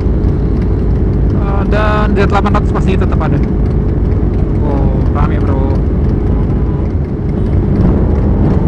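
Many motorcycle engines idle and rumble close by.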